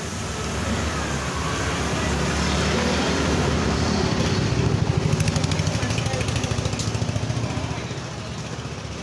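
A motorbike engine rumbles past in the street.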